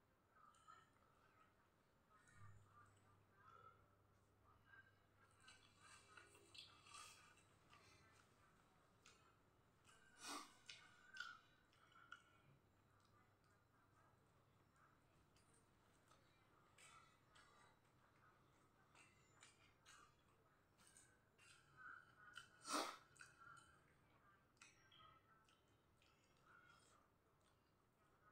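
Chopsticks clink against a ceramic bowl.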